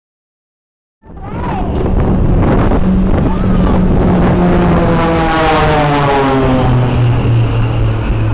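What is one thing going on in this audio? Propeller planes roar overhead, their engine pitch dropping as they pass.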